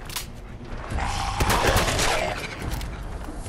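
A shotgun fires with a loud blast.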